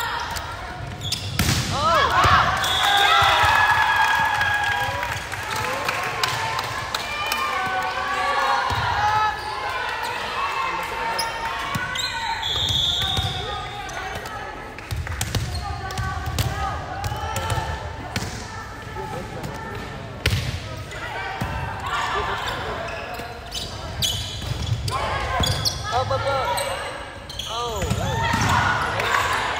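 Shoes squeak sharply on a gym floor.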